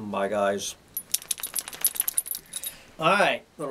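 A dog's collar tags jingle as the dog shakes itself.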